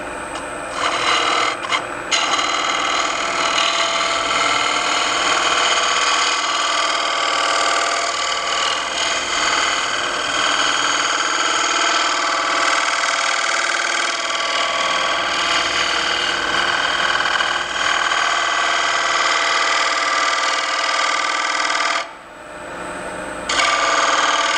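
A lathe tool scrapes and hisses loudly against spinning wood.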